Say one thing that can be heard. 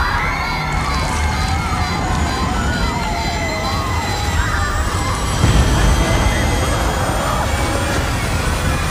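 An aircraft engine drones steadily with a low rumble.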